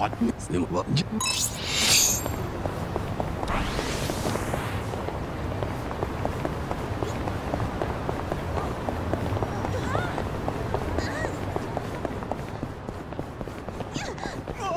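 A crowd murmurs in a busy street.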